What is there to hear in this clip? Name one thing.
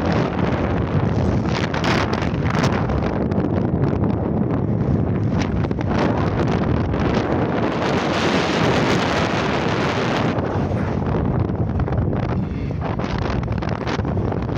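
Wind rushes loudly past a moving car's open window.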